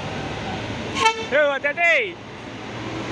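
A bus horn blares a loud tune up close.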